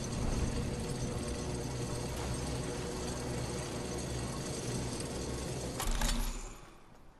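A zipline hums and rattles steadily as a character rides along it.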